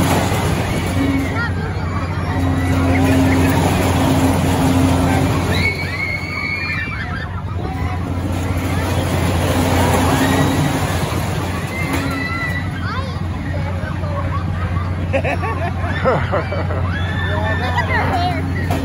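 Riders scream and shriek in the distance.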